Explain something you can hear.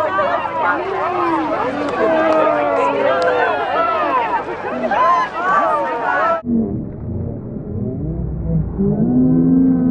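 A crowd of young men and women shout and cheer nearby.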